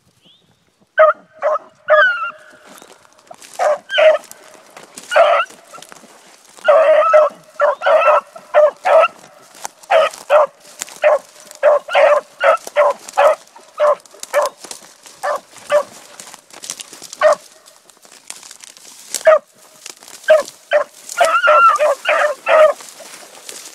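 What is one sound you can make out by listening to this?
Dogs bark and bay repeatedly, close by.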